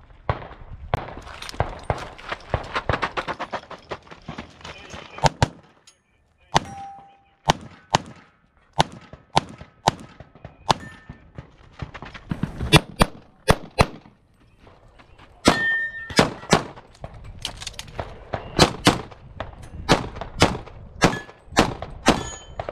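Pistol shots crack in rapid bursts outdoors.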